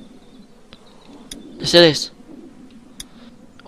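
A short electronic click sounds.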